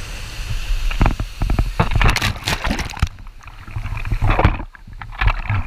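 Water splashes loudly as a man plunges in.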